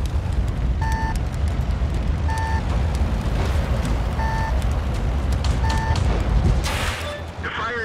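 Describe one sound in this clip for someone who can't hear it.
A tank engine rumbles steadily at idle.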